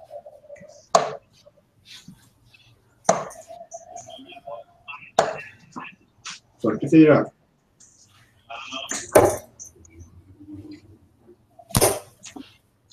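Darts thud into a bristle dartboard.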